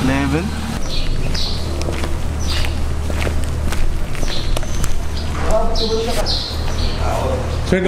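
Footsteps tap on a concrete floor.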